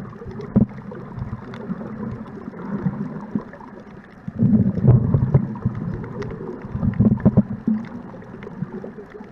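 Water rumbles and sloshes, muffled as if heard underwater.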